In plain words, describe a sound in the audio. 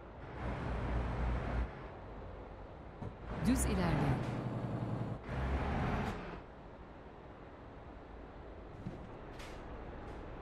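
A truck engine rumbles and revs in bursts.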